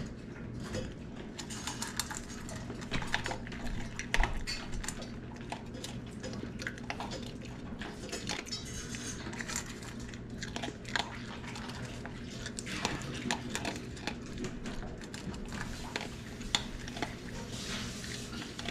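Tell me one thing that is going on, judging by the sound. A dog crunches dry kibble.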